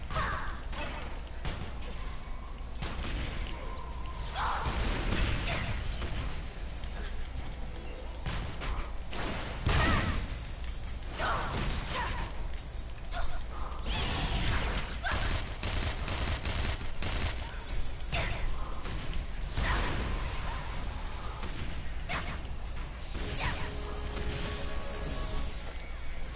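Blades swish and strike in quick bursts.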